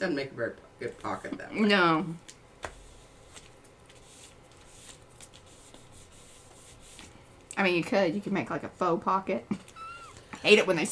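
Paper slides and rustles under hands.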